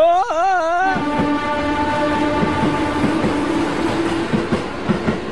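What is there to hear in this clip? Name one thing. A train rumbles past.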